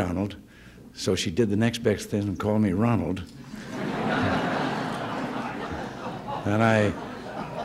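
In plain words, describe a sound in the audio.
An elderly man speaks warmly into a microphone.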